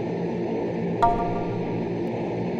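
A short electronic chime sounds.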